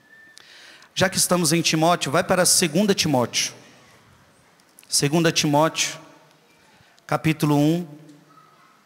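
A man speaks solemnly into a microphone, heard through a loudspeaker in a large echoing hall.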